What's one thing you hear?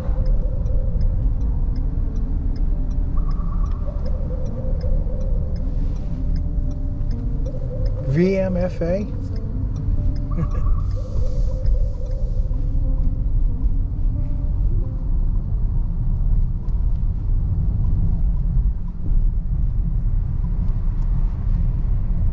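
A car engine hums and rumbles steadily from inside the car as it drives.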